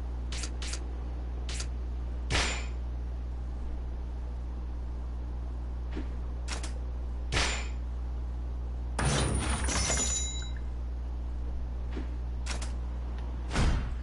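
Short menu clicks blip now and then.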